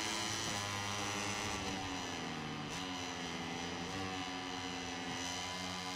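A racing motorcycle shifts gears, its engine pitch dropping and rising.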